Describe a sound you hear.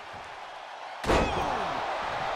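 A heavy body slams down onto a table with a loud crash.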